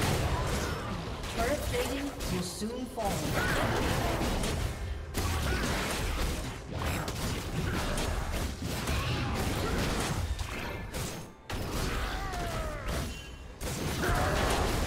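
Spell effects crackle and clash in a fast fight.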